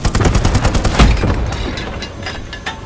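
A large gun fires with a loud, booming blast.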